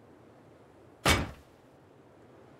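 A heavy metal door clanks into place.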